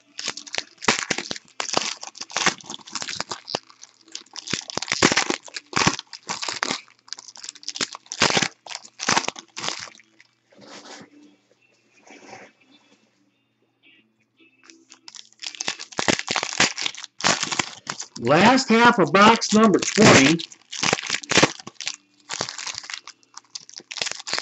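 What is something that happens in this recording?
Foil wrappers crinkle and tear as packs are ripped open.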